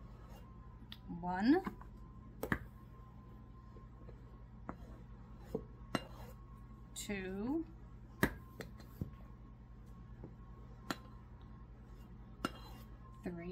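A knife taps and scrapes against a plastic tub.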